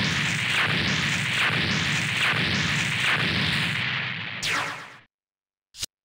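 Explosions boom and rumble with rapid crackling blasts.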